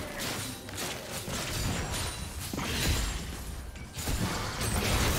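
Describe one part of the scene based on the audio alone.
Magic blasts and sword hits crackle and thump in a fast game battle.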